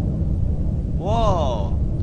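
A creature lets out a loud, wavering shriek.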